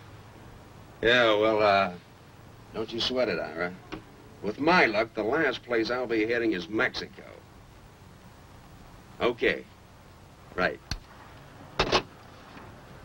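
A man talks animatedly into a telephone nearby.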